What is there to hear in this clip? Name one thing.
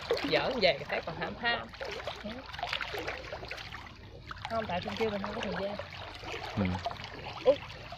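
Water splashes as a fishing net lands on it.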